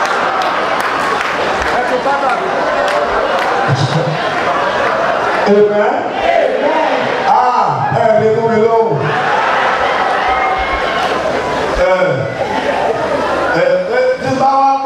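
A crowd of women sings along.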